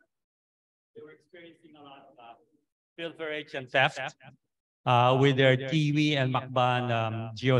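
A man speaks into a microphone, heard through loudspeakers in a large room.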